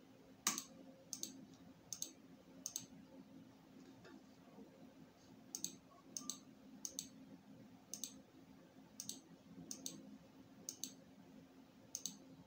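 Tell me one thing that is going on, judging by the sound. A computer hums steadily close by.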